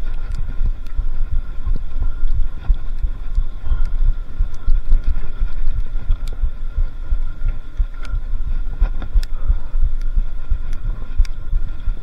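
Wind buffets loudly against a microphone outdoors.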